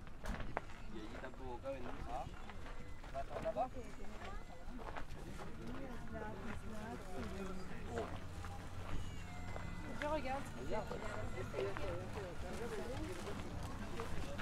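Shoppers chatter in the distance.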